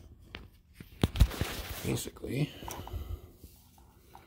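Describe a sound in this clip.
A plastic cap scrapes and rustles against plastic.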